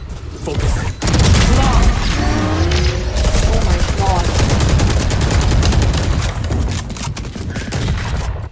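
Game sound effects whoosh and boom loudly.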